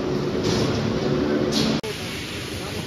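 A machine hums loudly.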